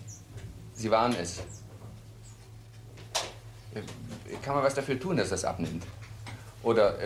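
A middle-aged man speaks calmly, close by.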